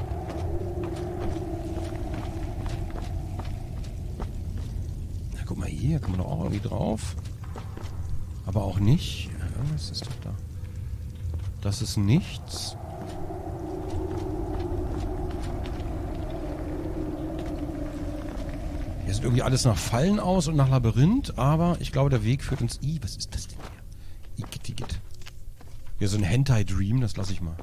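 Footsteps crunch on a rocky floor.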